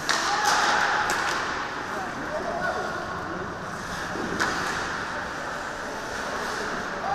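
Ice skates scrape across the ice in a large echoing rink.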